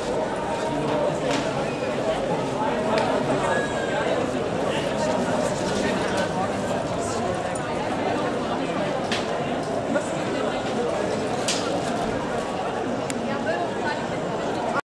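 Bicycles rattle and click as they roll over cobblestones.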